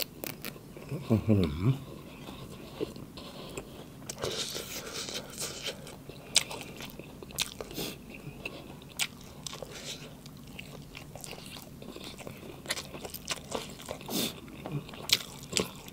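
A young man chews and slurps food loudly, close up.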